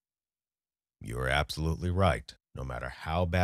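A young man speaks close to a microphone.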